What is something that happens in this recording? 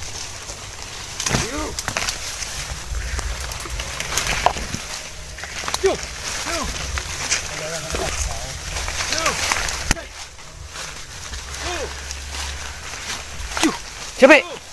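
Footsteps crunch on dry leaves.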